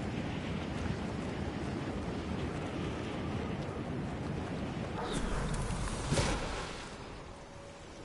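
Wind rushes loudly past a falling character.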